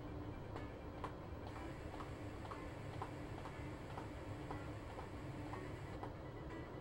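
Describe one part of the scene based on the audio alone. Short electronic video game beeps sound in quick succession.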